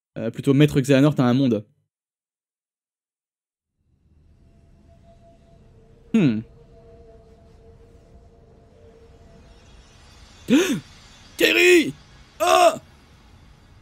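A young man speaks into a close microphone in short bursts.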